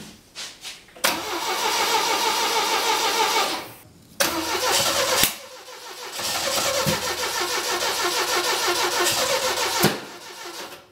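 A car engine cranks and sputters loudly.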